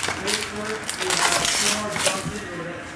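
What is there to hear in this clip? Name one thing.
A foil pack rips open.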